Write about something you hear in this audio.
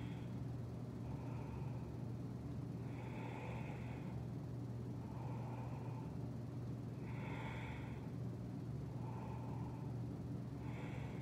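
Electric fans hum steadily nearby.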